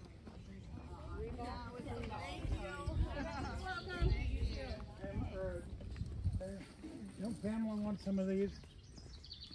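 A woman talks nearby outdoors.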